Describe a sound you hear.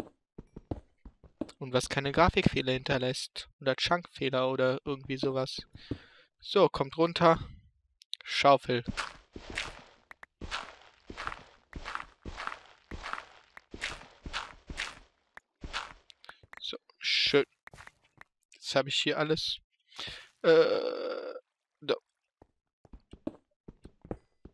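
Pickaxe blows chip and crack through stone and gravel in quick, repeated knocks.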